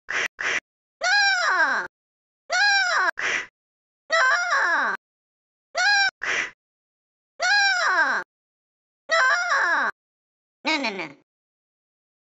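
A cartoon cat speaks in a high, squeaky, sped-up voice in short bursts.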